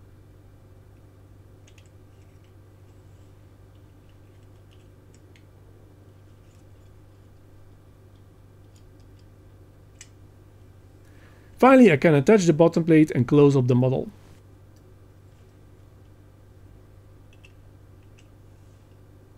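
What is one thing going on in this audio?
Small plastic parts click and tap softly as they are handled.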